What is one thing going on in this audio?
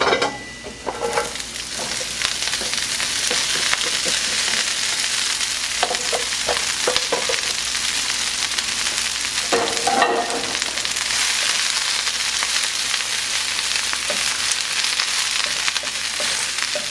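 Cabbage sizzles steadily in a hot pan.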